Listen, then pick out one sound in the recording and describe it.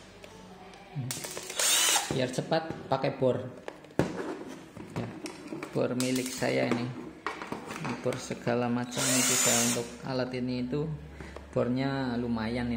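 An electric screwdriver whirs in short bursts.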